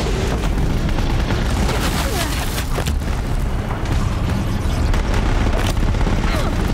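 A huge machine creature rumbles and roars nearby.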